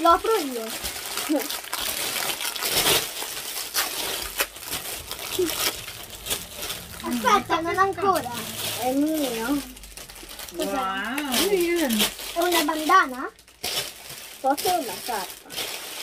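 A young girl talks and exclaims close by.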